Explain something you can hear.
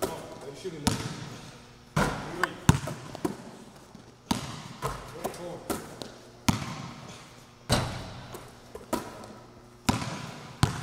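A basketball bounces and thuds on a wooden floor, echoing in a large hall.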